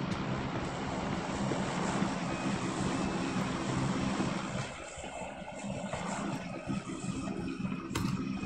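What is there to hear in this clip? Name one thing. A buggy engine roars as it drives.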